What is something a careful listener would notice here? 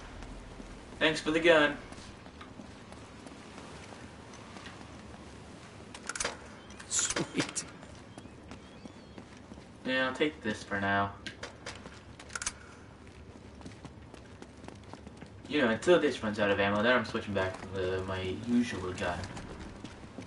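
A young man talks casually into a microphone.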